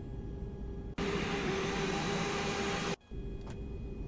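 A jet engine roars loudly and close by.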